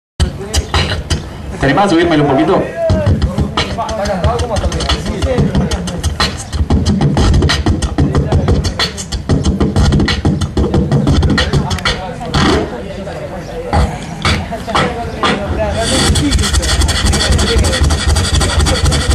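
A young man beatboxes into a microphone, with fast drum-like thumps, clicks and hisses.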